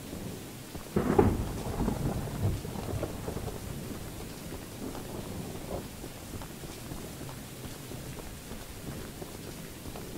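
Wind blows steadily through tall grass outdoors.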